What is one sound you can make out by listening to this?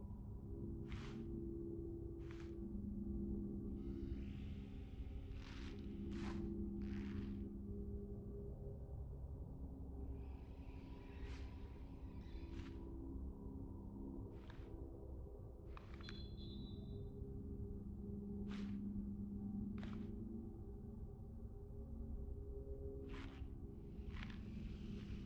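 Short soft clicks sound now and then as a menu selection moves.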